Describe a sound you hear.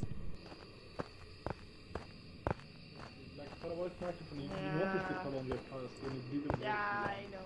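Footsteps thud slowly on the ground outdoors.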